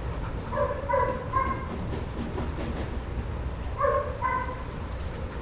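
A dog barks in short, high yelps.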